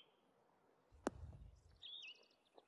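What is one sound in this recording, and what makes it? A golf ball thuds down onto turf.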